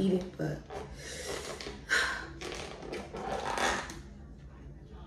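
A plastic lid crinkles and rustles as it is peeled off a container.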